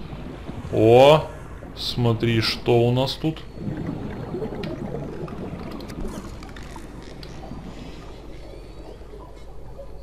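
Water bubbles and gurgles underwater.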